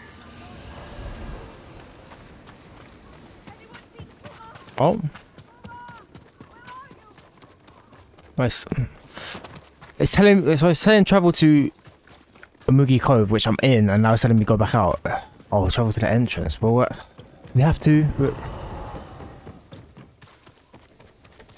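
Footsteps run quickly over stone and earth.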